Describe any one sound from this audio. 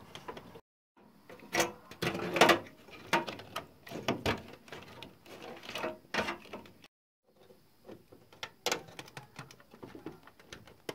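Plastic connectors click and rattle as cables are pushed into place.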